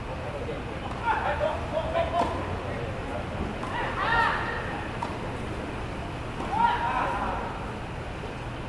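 Men call out to each other at a distance.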